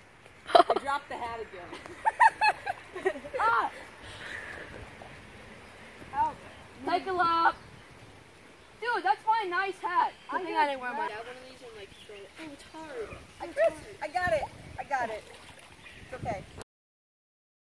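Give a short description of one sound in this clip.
Young boys talk and shout excitedly outdoors.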